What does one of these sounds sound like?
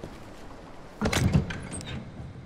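A game menu opens with a soft thud and click.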